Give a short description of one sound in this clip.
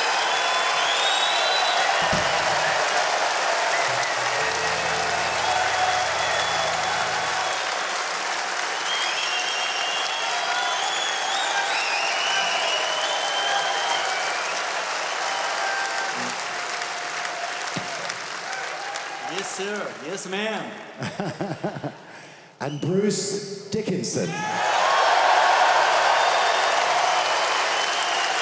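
A large crowd cheers loudly in a big echoing hall.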